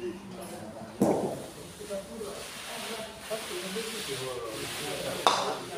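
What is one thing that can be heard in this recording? A bowling ball knocks sharply against another ball.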